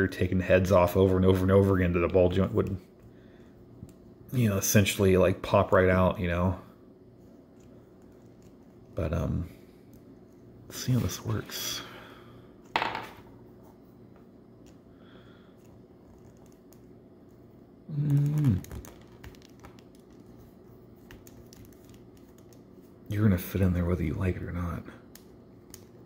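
Small plastic toy parts click and snap as they are fitted together.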